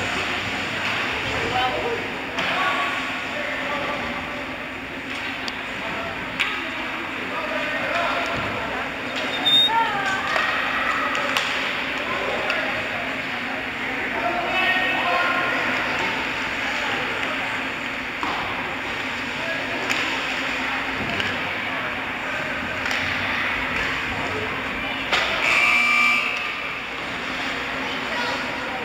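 Skate blades scrape across the ice.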